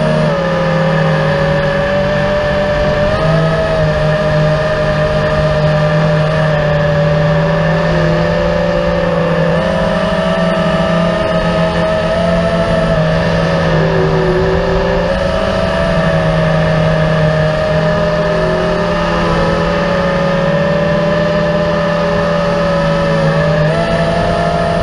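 A quadcopter drone's motors whine, rising and falling in pitch.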